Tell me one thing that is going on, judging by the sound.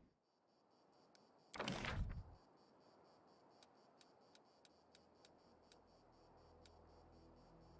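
Soft interface clicks tick as menu items are picked.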